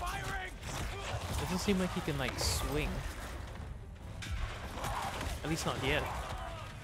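Heavy blows thud and smack in a brawl.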